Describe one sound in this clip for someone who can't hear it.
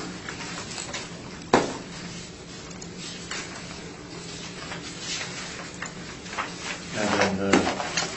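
Papers rustle on a table.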